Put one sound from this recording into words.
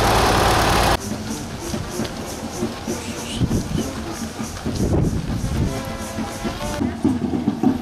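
A crowd murmurs and chatters while walking.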